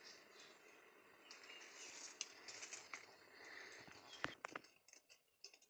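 Leafy branches rustle and scrape as a stick pushes through them.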